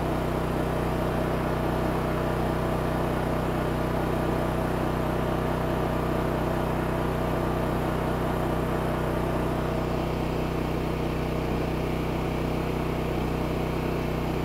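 A small generator engine runs with a steady, droning hum.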